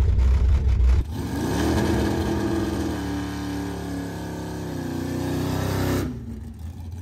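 A car engine revs and roars as a muscle car does a burnout.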